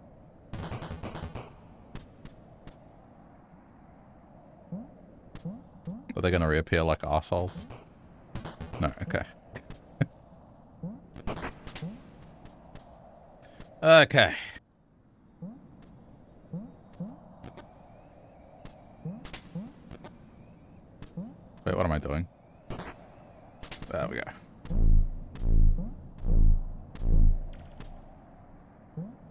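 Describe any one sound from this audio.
Short electronic game sound effects blip and chirp.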